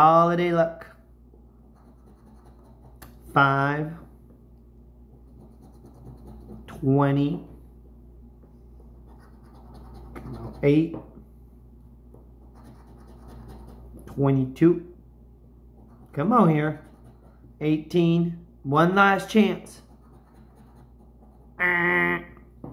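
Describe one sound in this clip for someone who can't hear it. A coin scratches across a card in short rasping strokes.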